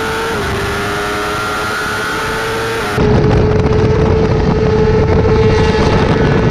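A motorcycle engine roars at high speed close by.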